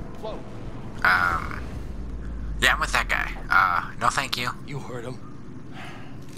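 A man groans and shouts in pain.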